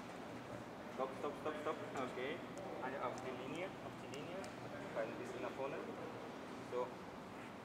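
A man speaks calmly nearby in a large echoing hall.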